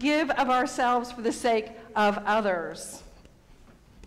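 A woman sings into a microphone in a large echoing room.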